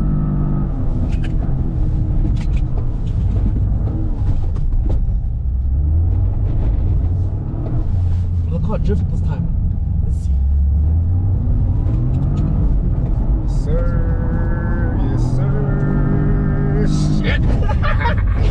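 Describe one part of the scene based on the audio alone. A car engine roars and revs up and down.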